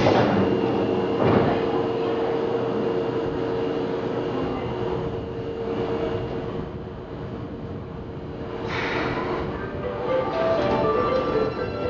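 An electric train hums steadily while standing still.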